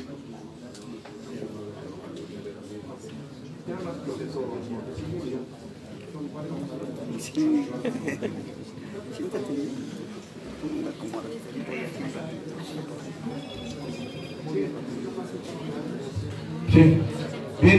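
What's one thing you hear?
Several men talk nearby in low voices.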